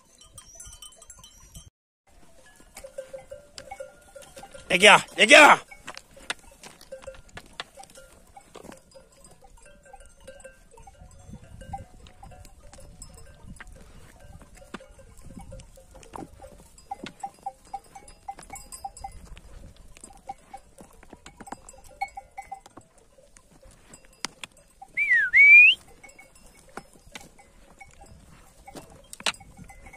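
Sheep hooves clatter on loose stones.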